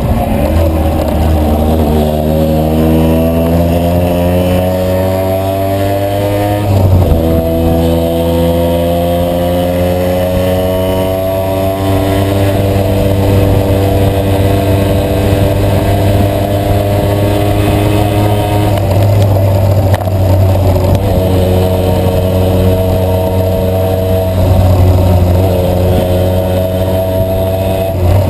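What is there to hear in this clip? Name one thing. A motorcycle engine hums loudly and rises in pitch as it speeds up through the gears.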